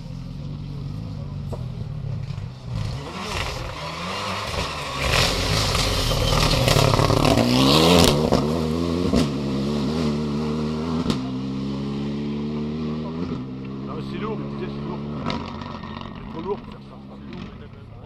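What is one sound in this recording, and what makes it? A rally car engine roars and revs hard as the car speeds past close by, then fades into the distance.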